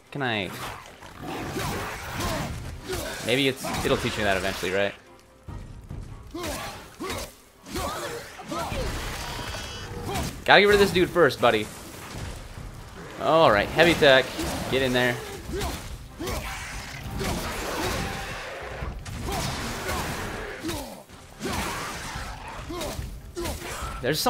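Heavy blows thud as an axe strikes creatures.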